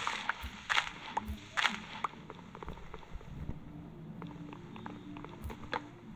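Blocks are dug with quick, dull knocks.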